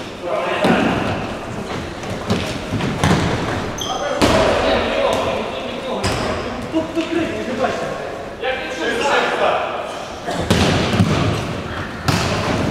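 A ball is kicked with sharp thuds in a large echoing hall.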